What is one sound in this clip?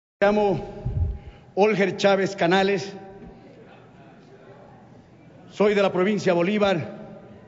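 A middle-aged man speaks formally into a microphone in a large room, pausing between phrases.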